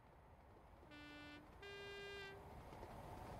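A diesel locomotive sounds two blasts of its horn.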